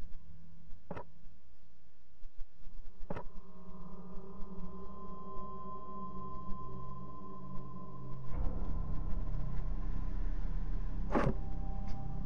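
Short menu clicks sound as options are picked.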